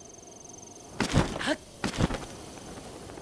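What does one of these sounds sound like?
A glider canopy snaps open with a loud flap.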